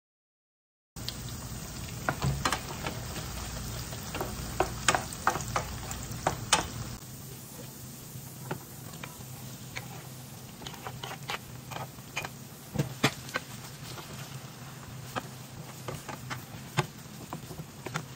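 A wooden spoon scrapes and taps against a frying pan.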